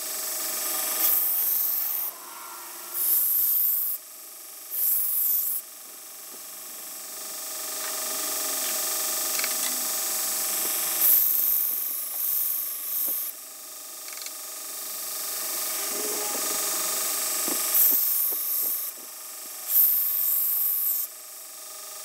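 A steel blade grinds against a running sanding belt in short hissing bursts.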